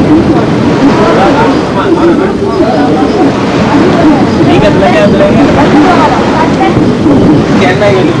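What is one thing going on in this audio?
Children chatter nearby.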